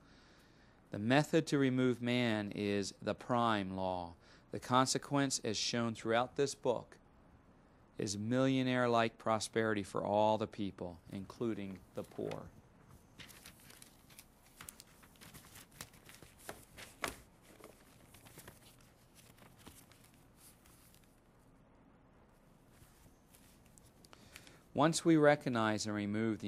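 A man reads aloud calmly, close by.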